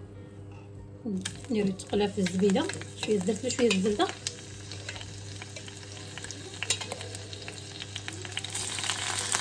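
Oil trickles and splashes onto a clay lid.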